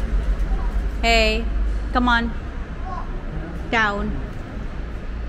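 A young girl calls out in short, high-pitched squeals nearby.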